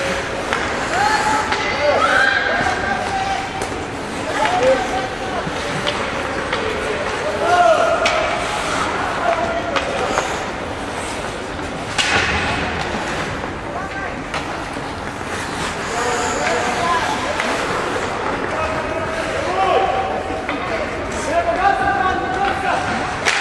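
Spectators shout in a large echoing rink.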